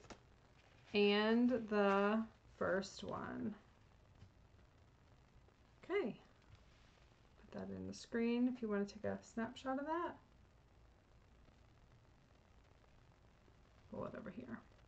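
A woman talks calmly into a close microphone.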